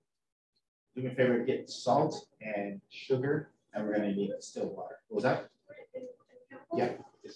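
A man lectures through a microphone.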